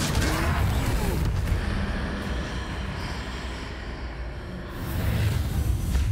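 A magic spell crackles and whooshes.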